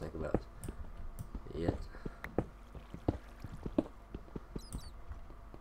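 Footsteps tap on stone in a quick, uneven rhythm.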